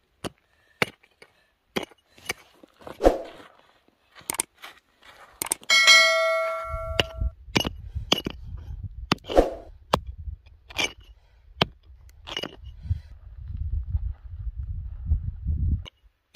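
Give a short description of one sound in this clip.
A small hammer chops and scrapes into dry, stony ground.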